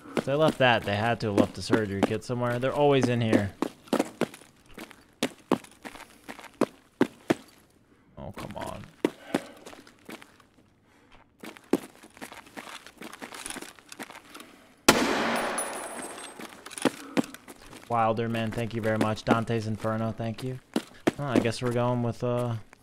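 Footsteps tap and scuff on a hard floor.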